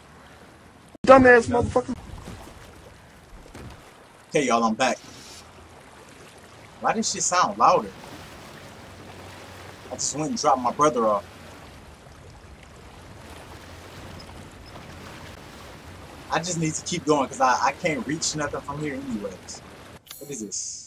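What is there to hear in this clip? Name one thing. A young man talks in short animated bursts through a headset microphone.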